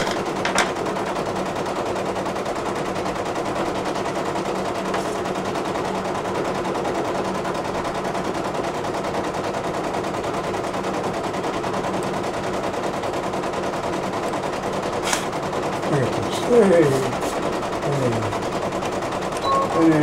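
A sewing machine hums steadily.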